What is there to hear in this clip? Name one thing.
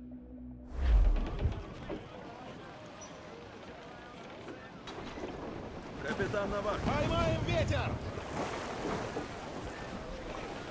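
Waves wash against a wooden ship's hull.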